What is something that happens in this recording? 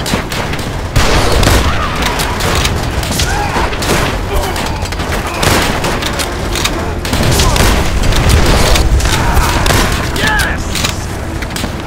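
A mounted machine gun fires.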